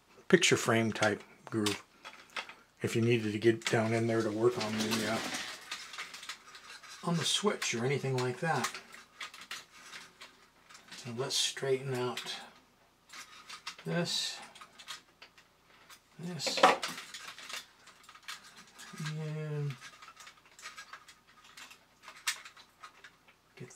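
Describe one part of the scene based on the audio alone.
Metal parts of a toy click and rattle as hands handle them.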